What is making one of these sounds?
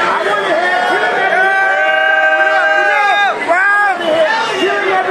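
A man raps loudly into a microphone over a loudspeaker in a large echoing hall.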